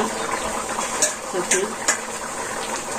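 A metal bowl clinks.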